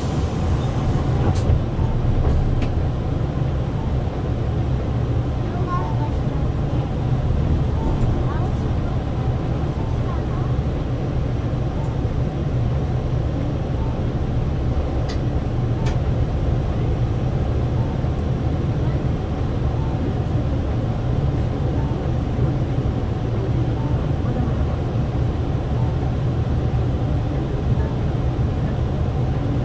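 A bus engine rumbles low and steady from inside the bus.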